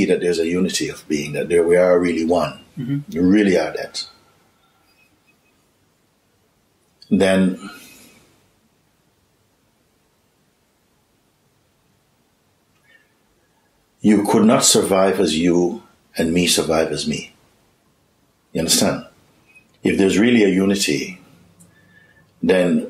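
A middle-aged man speaks calmly and thoughtfully close to a microphone, with long pauses.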